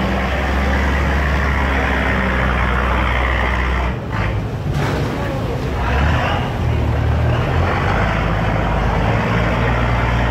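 A barge's diesel engine rumbles.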